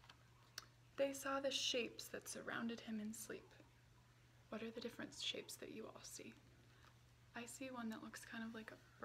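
A young woman reads aloud calmly and expressively, close by.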